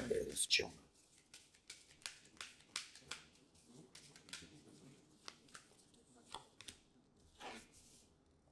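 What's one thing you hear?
Playing cards riffle and flick softly as they are shuffled.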